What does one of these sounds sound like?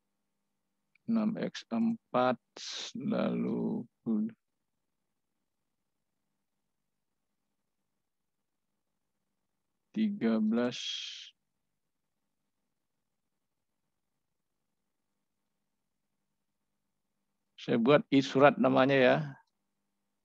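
A man speaks calmly over an online call, in short bursts between silences.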